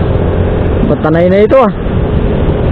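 A motorcycle engine revs up and down briefly.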